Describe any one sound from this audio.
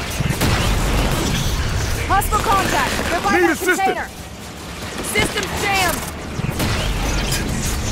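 Gunfire from a video game rattles in rapid bursts.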